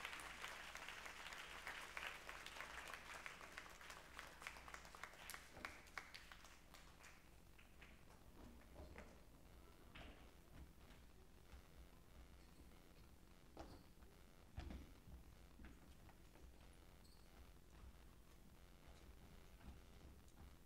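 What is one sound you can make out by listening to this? Many footsteps clatter on hollow wooden risers in a large echoing hall.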